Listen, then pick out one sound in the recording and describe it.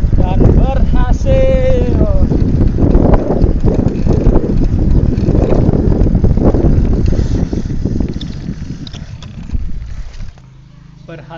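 A bicycle chain rattles and whirs as the pedals turn.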